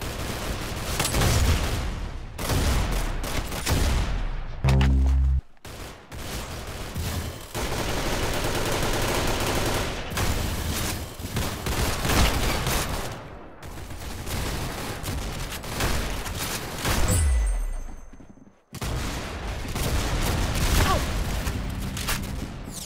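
Footsteps patter quickly on the ground in a video game.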